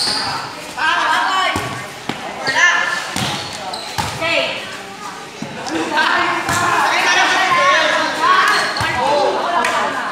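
A volleyball is hit with a slap.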